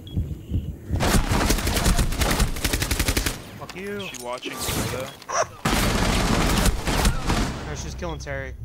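A rifle fires in rapid, loud bursts.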